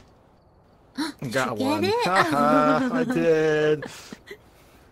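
A young woman exclaims loudly and with animation into a microphone.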